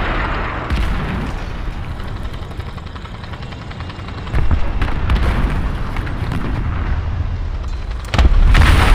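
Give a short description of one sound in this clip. A heavy armoured vehicle's engine rumbles low and steadily.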